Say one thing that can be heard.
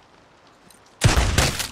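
A pistol fires loudly.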